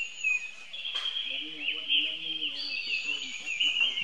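A baby monkey whimpers softly close by.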